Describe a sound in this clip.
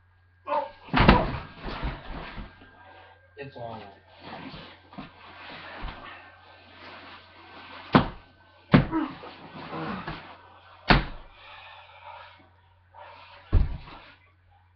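Bodies thump onto a bed during play wrestling.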